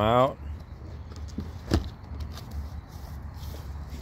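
A hand rubs against a cardboard box.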